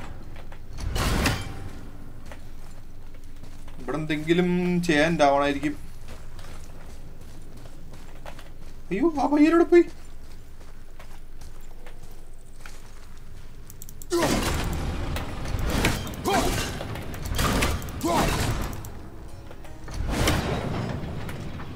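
An axe thuds sharply into wood several times.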